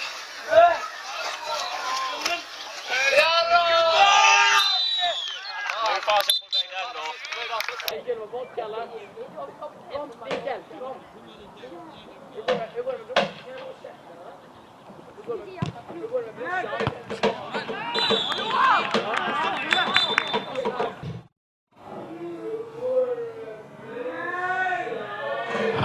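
Football players shout to each other on an open field.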